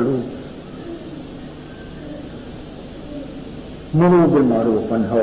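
An elderly man speaks slowly and firmly through a microphone, with pauses.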